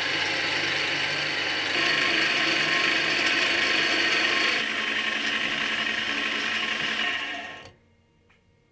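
A lathe whirs loudly.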